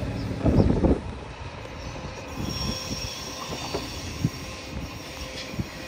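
A high-speed train approaches slowly, humming and clattering over the rails.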